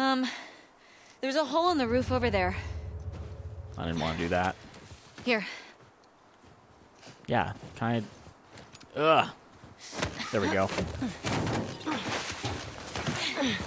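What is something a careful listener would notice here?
A second young woman answers from above, close by.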